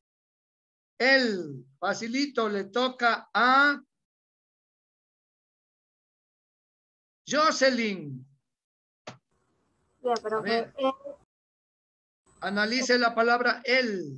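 A girl speaks in short bursts over an online call.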